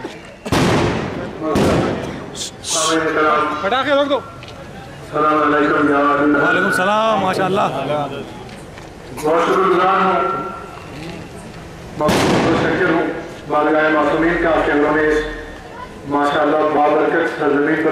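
A young man sings through a microphone.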